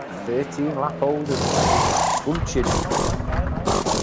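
Pneumatic wheel guns whirr in short bursts.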